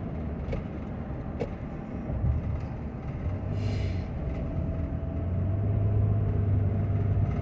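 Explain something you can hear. A car engine hums steadily while driving along a road.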